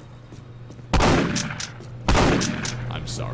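A shotgun fires loudly.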